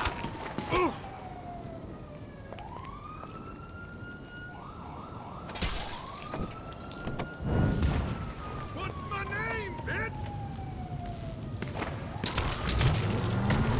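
Flames crackle and roar on a burning car.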